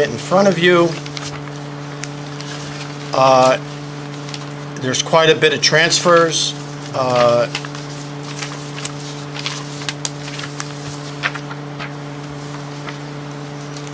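Papers rustle and shuffle.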